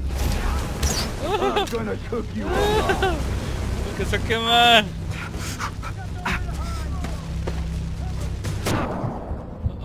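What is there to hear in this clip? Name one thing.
Fire roars and crackles close by.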